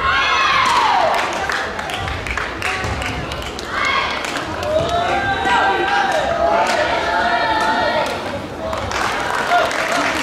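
Shoes squeak sharply on a court floor.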